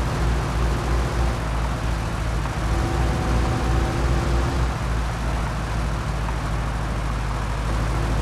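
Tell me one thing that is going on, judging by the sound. Tyres hiss over a snowy road.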